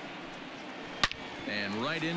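A bat hits a baseball with a sharp crack.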